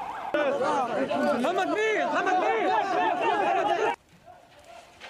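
A crowd of men shouts and chants outdoors.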